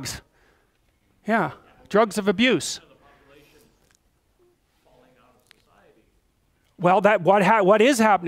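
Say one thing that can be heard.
A middle-aged man speaks with pauses to an audience, heard clearly up close.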